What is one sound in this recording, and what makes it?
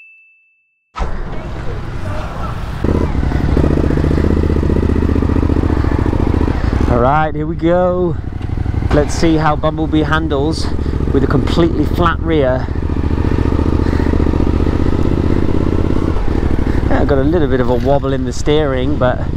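A motorcycle engine idles and then revs as the motorcycle rides off.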